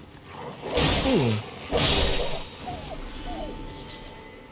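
A creature cries out in pain with a falling groan.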